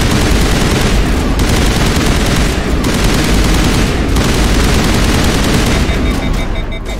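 Rapid gunfire rattles and blasts loudly.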